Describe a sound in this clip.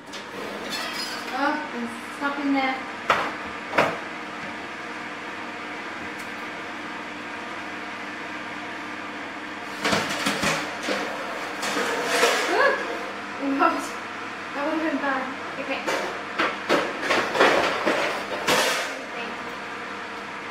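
Pans and dishes clatter and knock.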